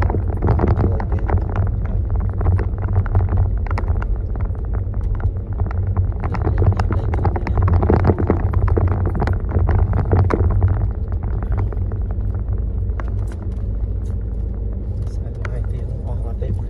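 A car engine hums from inside the cabin as the car rolls slowly over a dirt road.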